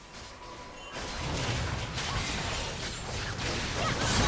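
Magic spells whoosh and crackle in a fierce fight.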